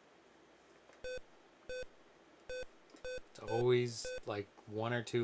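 A video game gives short electronic beeps.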